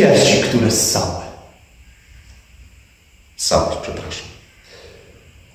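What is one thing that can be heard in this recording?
A man speaks with animation nearby, pausing between phrases.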